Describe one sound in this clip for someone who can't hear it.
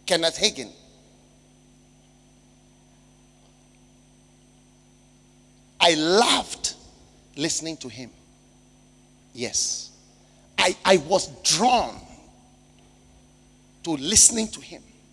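A man speaks with emphasis through a microphone, in short bursts with long pauses.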